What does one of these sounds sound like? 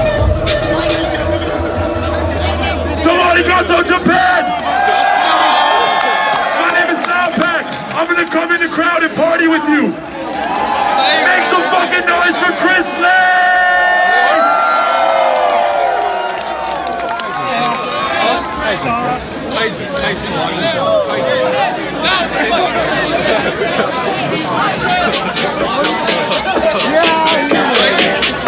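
A large crowd cheers and sings along loudly.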